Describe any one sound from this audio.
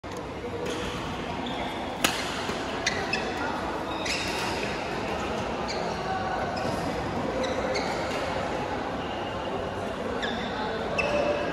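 A crowd of players chatters and calls out in a large echoing hall.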